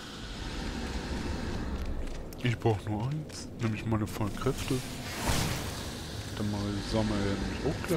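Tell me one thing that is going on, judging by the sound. A magical energy blast whooshes loudly.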